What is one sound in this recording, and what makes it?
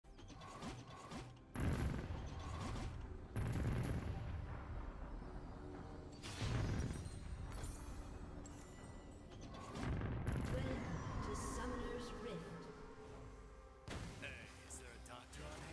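Video game combat sounds burst and crackle in short, loud blasts.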